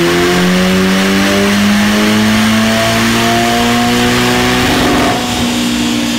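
A sports car engine roars loudly, rising in pitch as it revs up.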